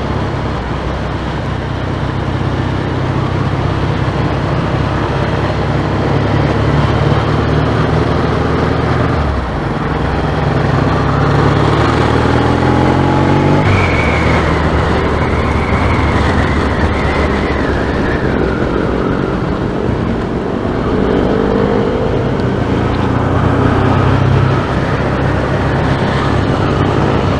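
A motorcycle engine rumbles up close, rising and falling in pitch as it speeds up and shifts gears.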